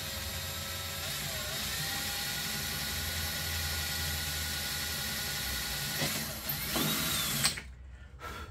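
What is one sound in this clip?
A small air tool whines steadily, its pitch wavering now and then.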